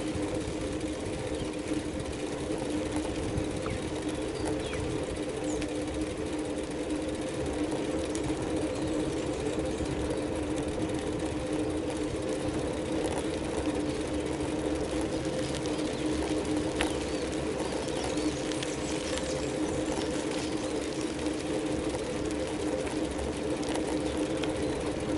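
Wind rumbles against the moving vehicle.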